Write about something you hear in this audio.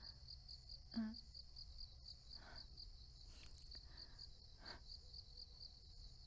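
Fingers tap lightly on a phone.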